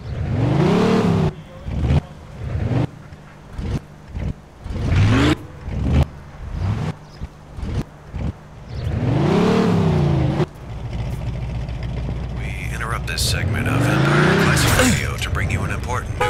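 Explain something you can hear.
A car engine revs up and dies down, again and again.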